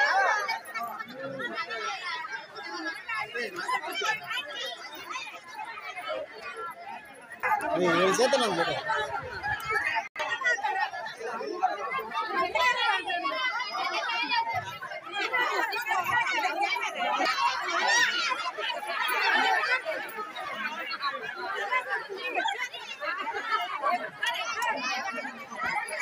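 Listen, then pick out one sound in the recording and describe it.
A crowd of women and men chatter and call out loudly close by.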